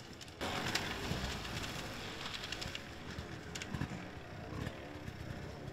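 An enduro dirt bike rides away along a wooded trail and fades.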